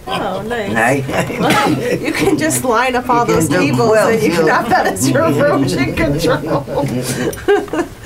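Men and women laugh together.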